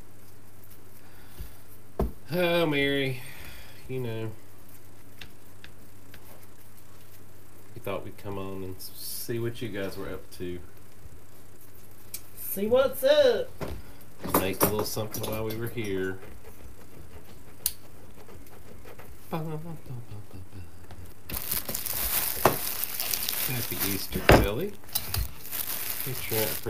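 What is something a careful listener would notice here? A second man talks and answers casually nearby.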